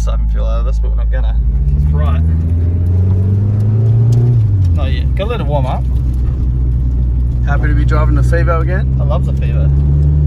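A young man talks with animation close by, over the engine.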